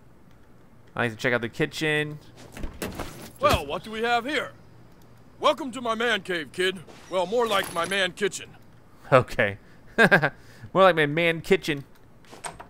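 A man speaks in a lively, cartoonish voice.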